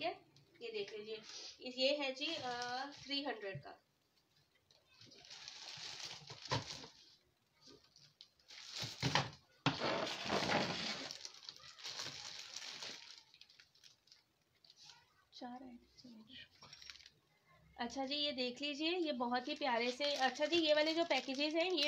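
Plastic items rustle and clatter as they are handled.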